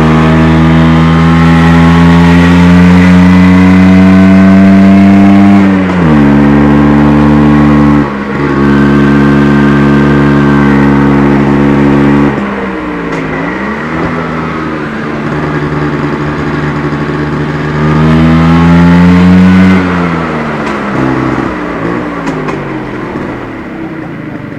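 A motorcycle engine roars close by, revving up and dropping as gears change.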